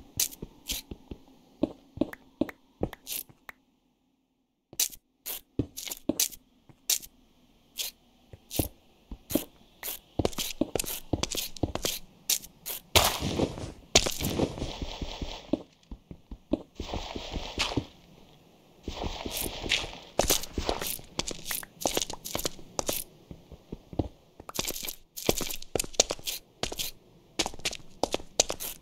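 Stone blocks crack and break in quick, repeated knocks as a pickaxe digs.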